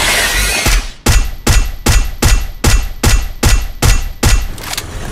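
A rifle fires in rapid, regular shots.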